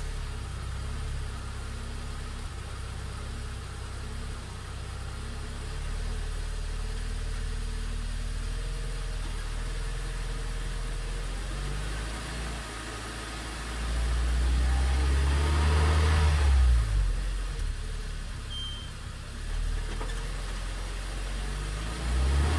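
An engine idles with a low, steady hum.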